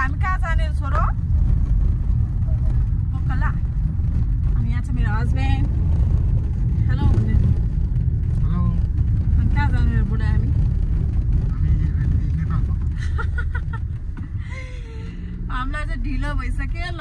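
A car engine hums steadily with road rumble.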